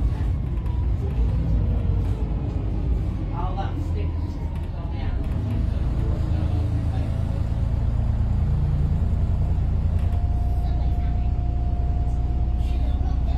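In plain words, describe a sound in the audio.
A bus engine whines, rising and falling in pitch as the bus speeds up and slows down.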